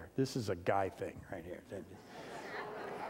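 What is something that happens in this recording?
A middle-aged man speaks with emotion through a microphone in a large room.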